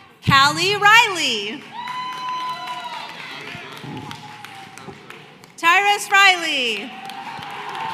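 A crowd whoops and cheers loudly in a large echoing hall.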